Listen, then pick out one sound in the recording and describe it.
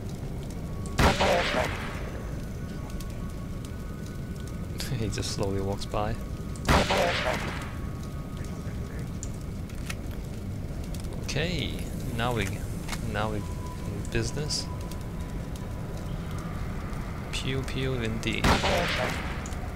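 A rifle fires single shots.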